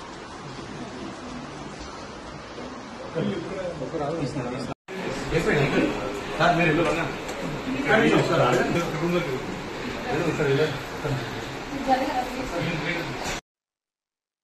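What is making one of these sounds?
A crowd of people talk over one another nearby.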